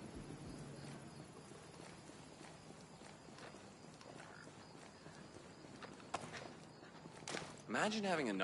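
Footsteps crunch softly on hard ground.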